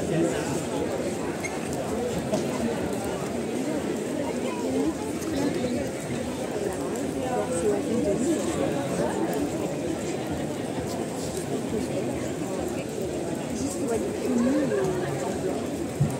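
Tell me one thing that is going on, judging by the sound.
A large crowd chatters and calls out all around.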